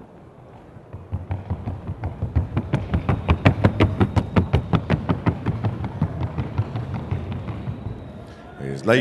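Horse hooves beat rapidly and evenly on a wooden board.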